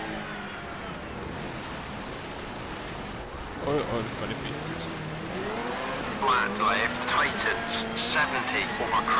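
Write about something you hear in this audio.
A rally car engine revs and hums steadily, rising and falling in pitch.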